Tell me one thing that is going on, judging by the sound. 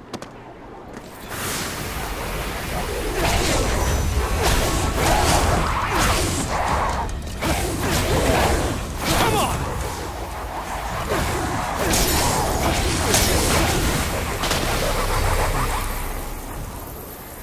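Magical blasts crackle and whoosh in loud bursts.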